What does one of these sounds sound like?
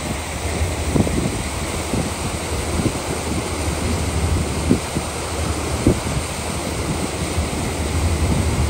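Wind blows steadily, buffeting and rumbling against the microphone.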